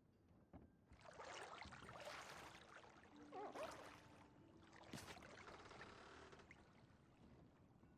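Water splashes and sloshes in a bathtub.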